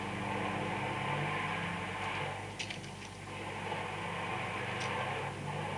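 A car engine hums steadily through a loudspeaker.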